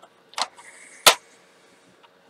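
A paper trimmer clicks as its blade is pressed down.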